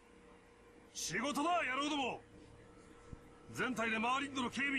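A man shouts forcefully nearby.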